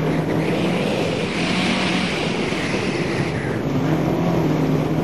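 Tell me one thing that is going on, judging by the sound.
Wind rushes loudly past the car.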